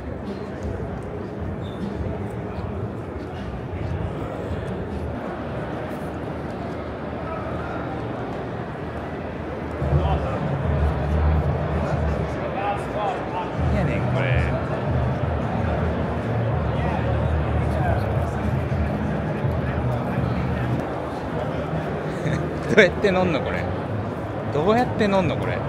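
A crowd chatters in a large, echoing hall.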